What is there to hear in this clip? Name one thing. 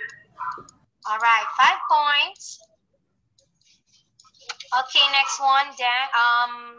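A young woman speaks clearly and with animation into a close microphone.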